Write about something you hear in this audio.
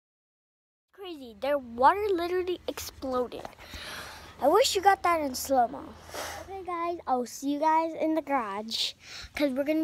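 A young girl talks animatedly and close up.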